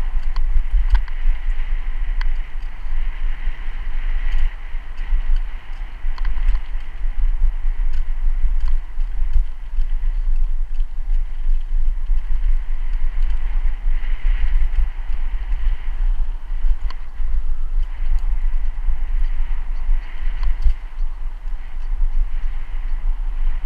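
Wind rumbles steadily against the microphone outdoors.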